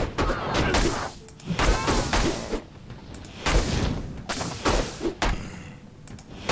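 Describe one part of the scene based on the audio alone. Magic blasts crackle and burst in quick succession during a fight.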